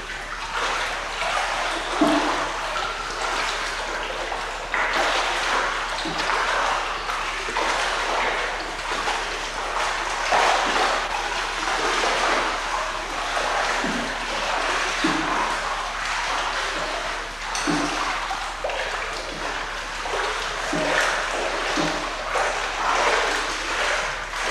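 A child splashes while wading through the water.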